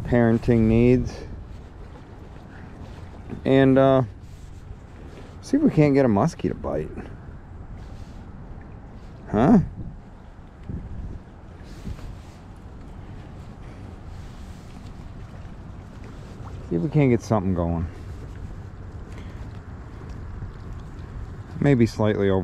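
Water laps gently against a rocky shore.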